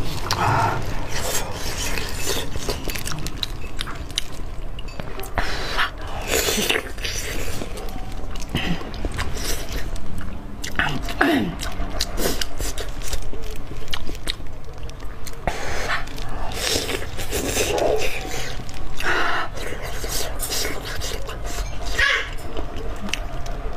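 Crispy food crunches between a young woman's teeth close up.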